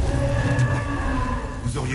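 A large fire roars.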